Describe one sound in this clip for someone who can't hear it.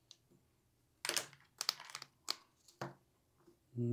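Playing cards tap softly as they are placed on a table.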